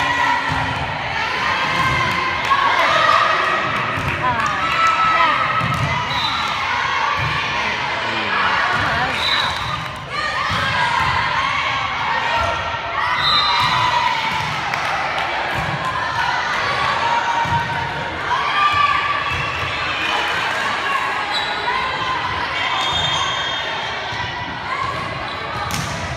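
A crowd of young girls cheers and shouts, echoing in a large hall.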